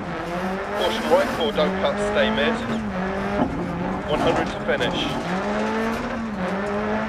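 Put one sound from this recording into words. A car engine drones and revs up and down as gear changes come.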